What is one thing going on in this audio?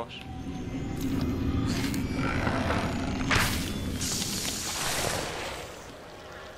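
A magic spell crackles and whooshes.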